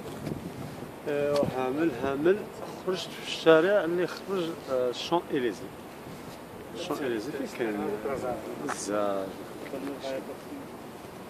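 A young man talks calmly and close by, outdoors.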